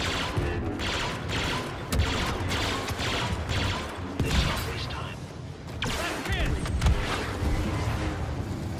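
Blaster guns fire in rapid bursts.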